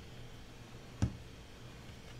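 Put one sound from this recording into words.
A plastic bottle is set down on a table with a knock.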